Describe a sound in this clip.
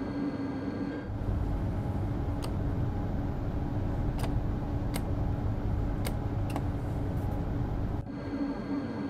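Inside a train cab, a low rumble roars loudly.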